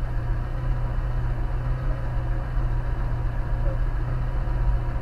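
A car engine hums steadily from inside the vehicle.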